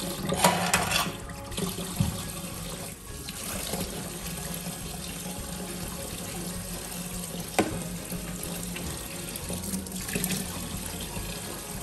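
Tap water runs steadily into a metal sink.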